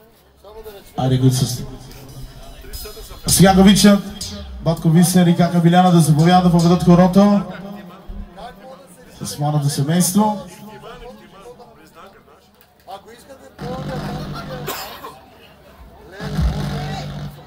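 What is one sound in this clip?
A crowd of men and women talk and call out loudly nearby outdoors.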